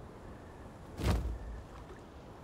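A menu closes with a soft whoosh.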